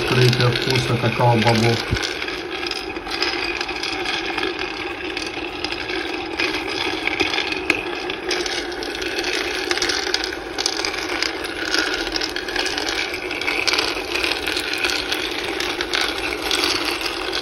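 A roaster motor hums steadily.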